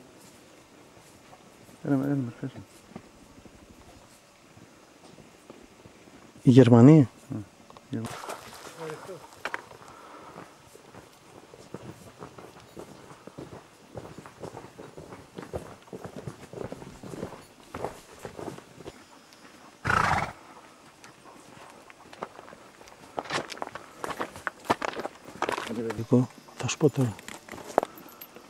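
Footsteps crunch on a stony path.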